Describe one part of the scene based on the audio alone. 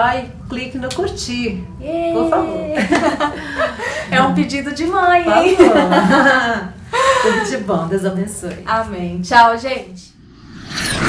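A middle-aged woman talks cheerfully close by.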